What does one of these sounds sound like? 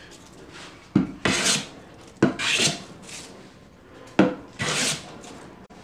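A hand plane shaves wood in short, sharp strokes.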